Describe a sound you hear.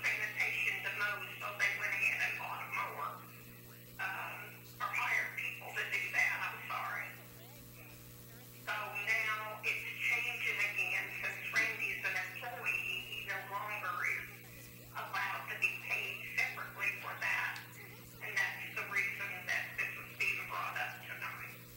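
A man speaks calmly in a small room, heard from a distance.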